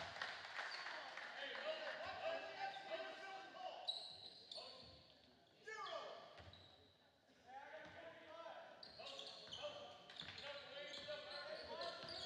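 A basketball bounces on the court floor.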